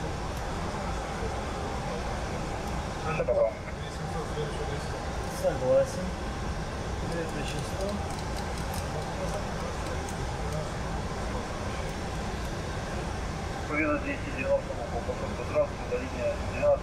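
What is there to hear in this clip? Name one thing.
An aircraft's engines rumble steadily and low.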